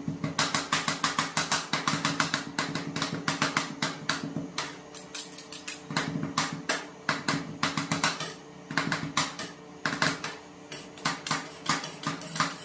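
Metal spatulas chop and scrape rapidly against a metal plate.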